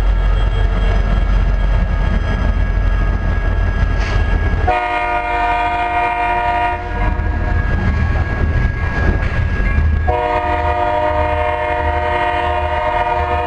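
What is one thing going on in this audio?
A freight train rolls past with wheels clattering on the track.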